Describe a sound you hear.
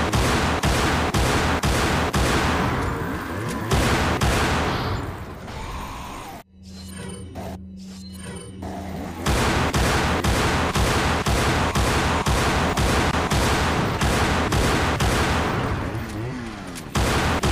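Gunshots fire in quick, repeated bursts.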